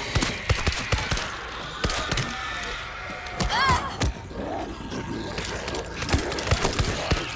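Zombies growl and snarl.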